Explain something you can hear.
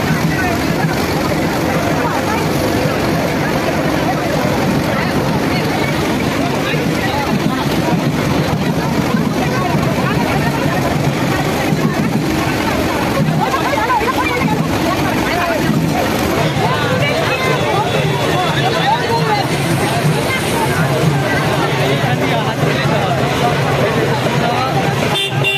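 A large outdoor crowd chatters loudly all around.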